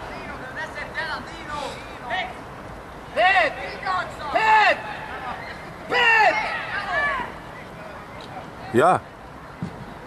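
Young men shout loudly to each other across an open outdoor field.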